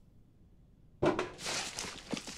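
A metal tin lid clicks open.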